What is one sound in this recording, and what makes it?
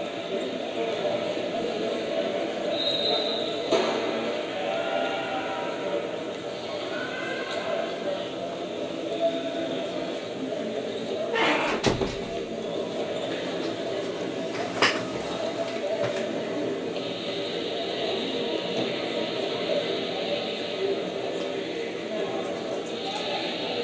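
A crowd of people chatters in a large echoing gym.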